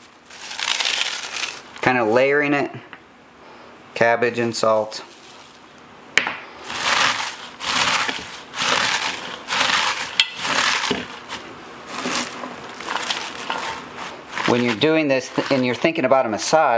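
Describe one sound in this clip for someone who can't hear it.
Hands crunch and squeeze shredded cabbage in a bowl.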